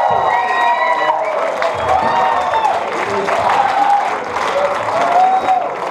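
A singer sings into a microphone over the band.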